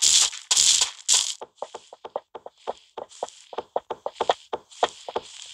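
Blocks break with short crunching thuds in quick succession.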